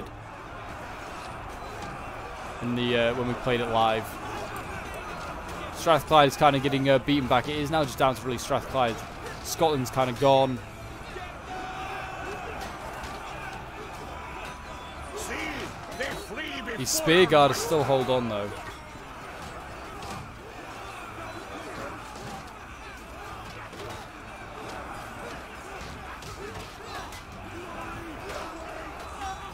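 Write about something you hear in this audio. Swords clang against shields in a large battle.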